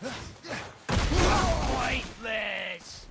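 A loud crashing burst throws up rock and dirt.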